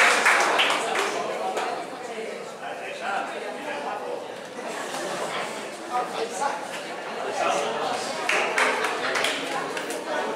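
An audience murmurs and chatters quietly.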